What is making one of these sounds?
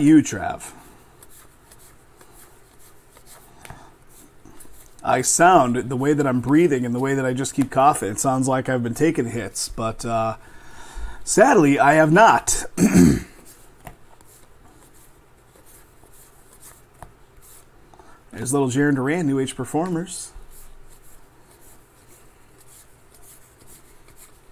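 Trading cards slide and rustle softly as they are shuffled by hand.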